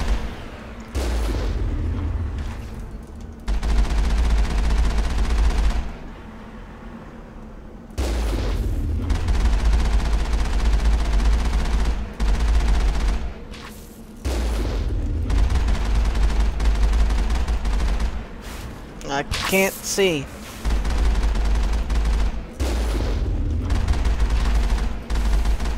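A vehicle cannon fires loud booming shots.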